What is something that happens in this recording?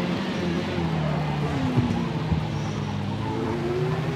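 Tyres squeal as a racing car slides through a corner.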